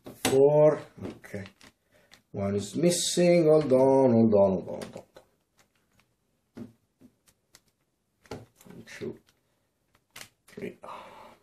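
Plastic clips click as a cooler is pressed into place.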